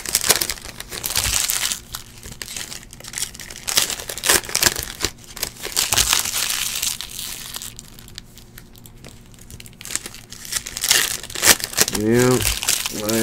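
Plastic wrappers crinkle and rustle as hands tear open packs of cards.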